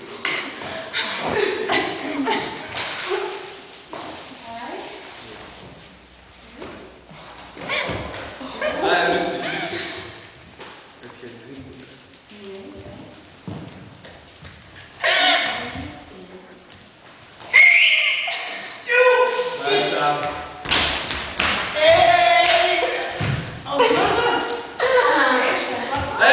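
A man talks and a woman talks in turn, echoing in a large hall.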